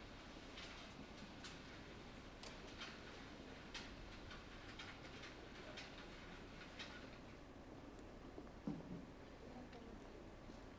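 A small audience murmurs quietly in a large echoing hall.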